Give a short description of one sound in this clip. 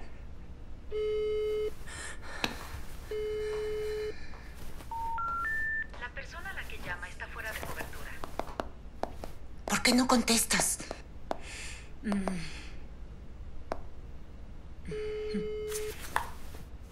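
A phone's ringing tone purrs through its earpiece.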